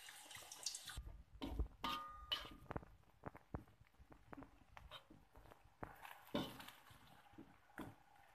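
A metal spatula scrapes and taps against a metal pan.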